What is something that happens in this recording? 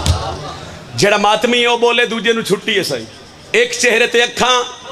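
A young man chants loudly into a microphone, his voice heard through loudspeakers.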